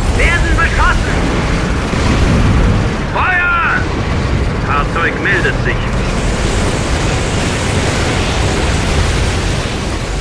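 Shells explode with deep rumbling blasts.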